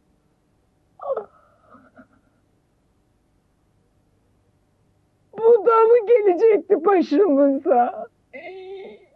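A woman sobs and wails loudly, close by.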